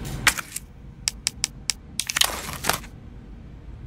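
Short electronic menu clicks sound in quick succession.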